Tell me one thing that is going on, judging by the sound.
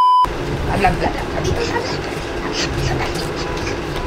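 A small boy giggles close by.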